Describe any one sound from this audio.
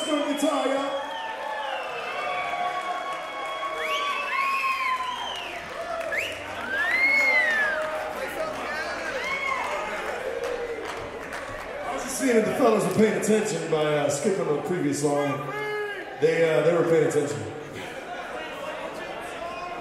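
A band plays electric guitars and drums live, in a reverberant hall.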